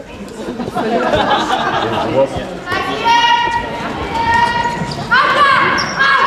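Women players shout and call out in an echoing hall.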